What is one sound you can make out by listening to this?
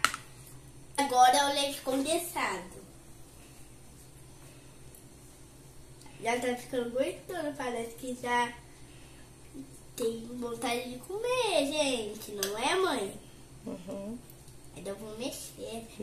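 A young boy talks in an animated voice, close by.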